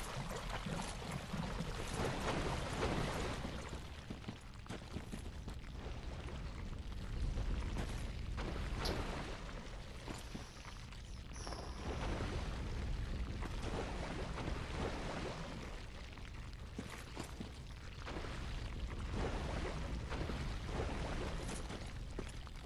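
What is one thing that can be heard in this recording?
Armoured footsteps splash through shallow water.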